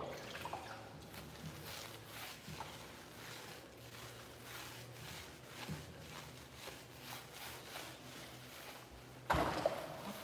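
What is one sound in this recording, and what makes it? Hands rub and squish through a wet dog's fur.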